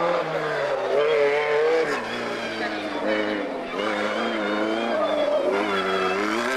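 A racing car engine revs high and changes pitch as the car shifts gears through a corner.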